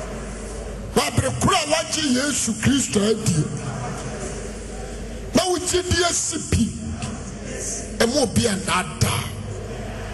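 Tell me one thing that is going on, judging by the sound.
A man preaches forcefully into a microphone, in short loud bursts.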